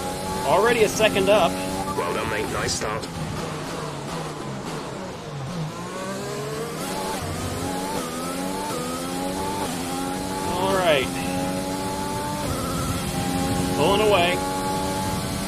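A man talks briefly through a microphone.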